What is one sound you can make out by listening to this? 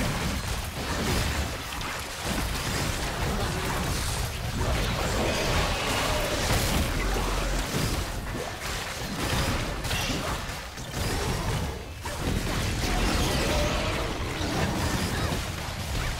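Magic spells crackle and blast during a fierce fantasy battle.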